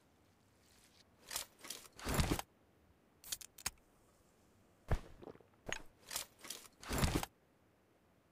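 A game character drinks from a can with short gulps.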